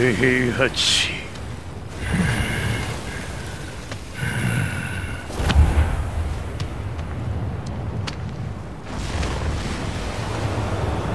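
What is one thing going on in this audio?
Molten lava rumbles deeply in the background.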